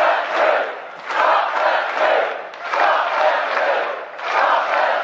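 A large crowd chants loudly in rhythmic bursts outdoors.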